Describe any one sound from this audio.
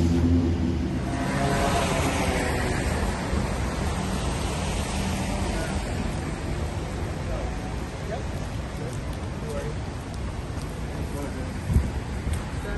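Traffic hums in the street outdoors.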